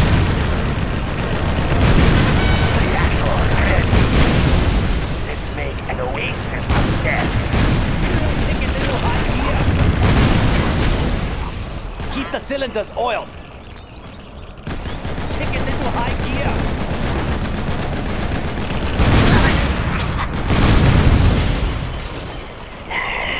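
Loud explosions boom and rumble one after another.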